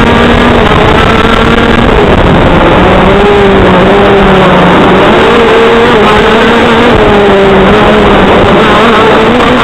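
Another kart engine buzzes nearby.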